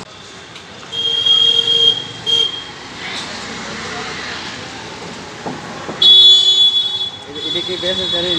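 A vehicle horn honks briefly.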